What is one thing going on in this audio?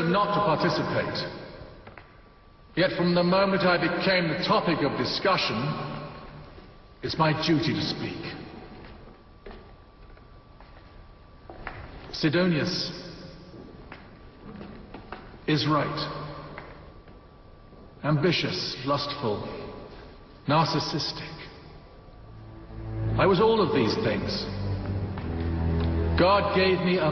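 A man speaks loudly and forcefully, his voice echoing in a large hall.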